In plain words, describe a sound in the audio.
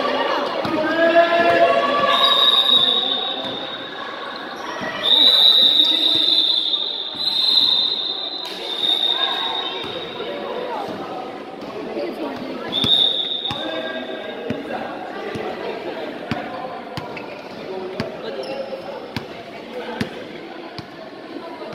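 A basketball bounces on an indoor court floor.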